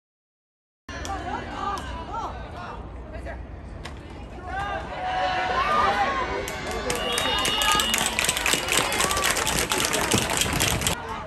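A group of young men shout and cheer outdoors.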